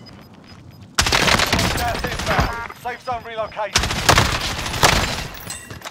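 A rifle fires loud gunshots that echo.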